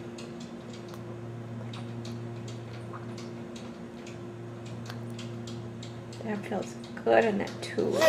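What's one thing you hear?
A baby chews and smacks its lips close by.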